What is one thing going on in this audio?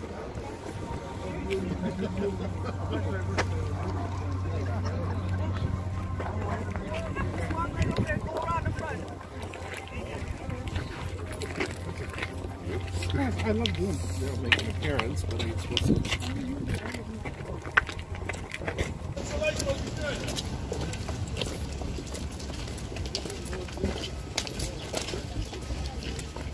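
A crowd of men and women murmurs and talks nearby outdoors.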